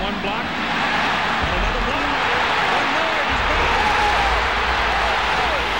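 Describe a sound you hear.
A large stadium crowd roars and cheers loudly.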